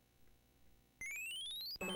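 A short video game jingle rises in quick steps.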